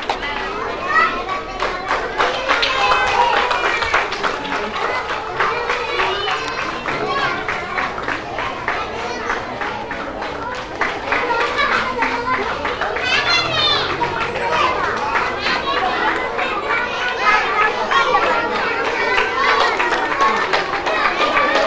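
Many young children chatter and call out together in an echoing hall.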